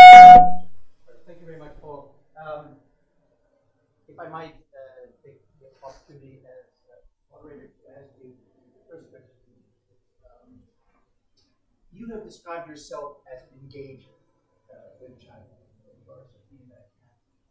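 A man speaks calmly to a room.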